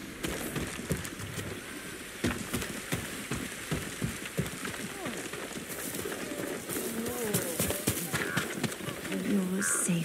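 Footsteps crunch on dirt and gravel at a steady pace.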